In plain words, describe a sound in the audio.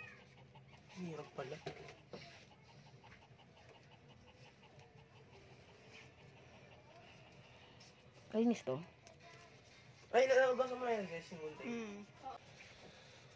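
A newborn puppy whimpers and squeals close by in short high cries.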